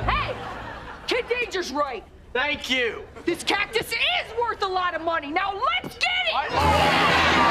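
A woman shouts forcefully.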